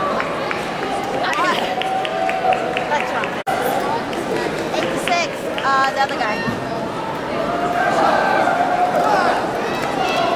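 A crowd chatters and calls out in a large echoing hall.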